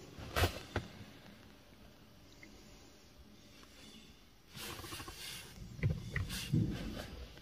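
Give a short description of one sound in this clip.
Brushes of a car wash whir and slap against a car.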